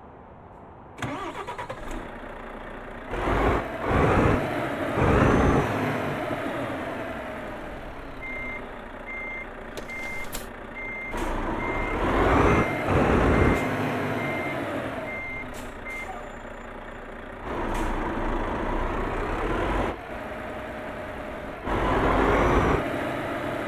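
A truck engine rumbles and revs up and down.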